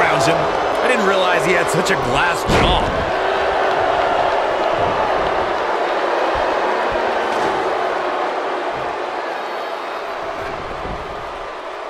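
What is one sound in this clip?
A large crowd cheers and roars steadily in an echoing arena, slowly fading.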